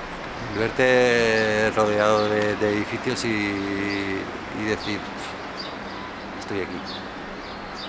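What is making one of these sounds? A man speaks with animation outdoors.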